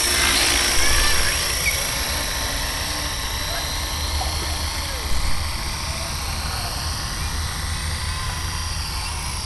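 Model helicopter rotor blades whir.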